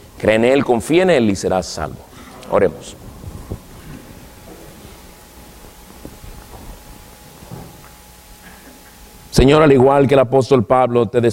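A man speaks with emphasis into a microphone in a room with some echo.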